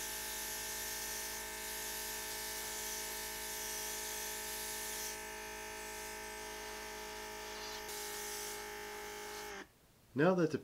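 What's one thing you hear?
An airbrush hisses as it sprays paint.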